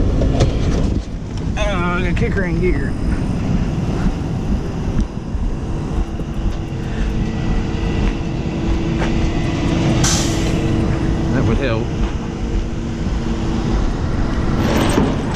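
Wind roars outdoors at the roadside.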